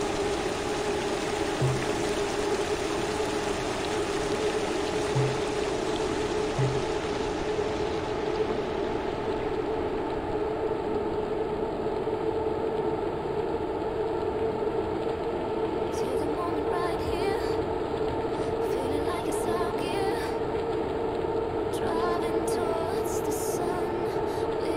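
A woman breathes heavily.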